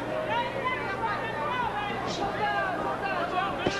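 Gloved punches thud against a boxer.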